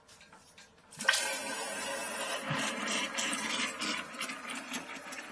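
Water rushes into a toilet tank.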